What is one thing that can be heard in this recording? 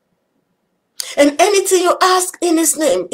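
A woman speaks calmly and warmly into a nearby microphone.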